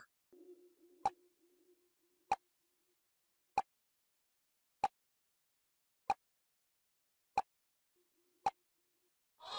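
A timer ticks steadily, about once a second.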